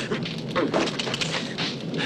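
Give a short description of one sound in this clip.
A man grunts with effort.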